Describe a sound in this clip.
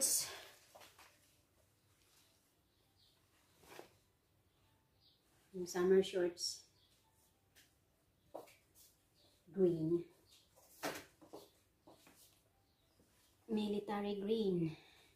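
Denim fabric rustles and flaps in hands.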